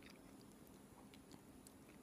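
Flaky pastry crunches as it is broken apart.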